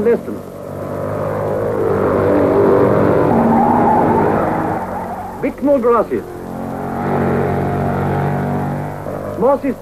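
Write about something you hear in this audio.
A racing car engine roars loudly as it speeds past, rising and falling in pitch.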